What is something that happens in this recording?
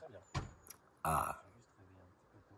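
A young man yawns loudly.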